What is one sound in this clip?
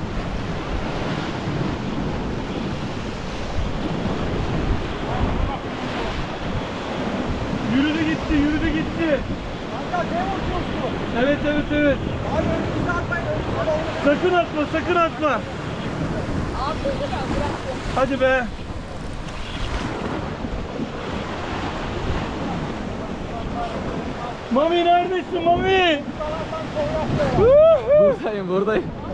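Waves crash and wash against rocks close by.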